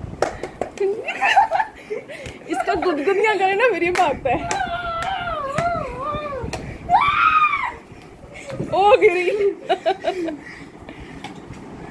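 A teenage boy laughs and shouts excitedly nearby.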